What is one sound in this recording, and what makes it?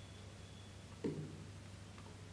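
Something is set down on a table with a dull thud.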